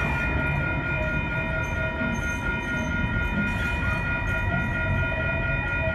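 A level-crossing bell rings steadily.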